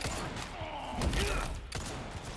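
A heavy kick lands with a dull thud.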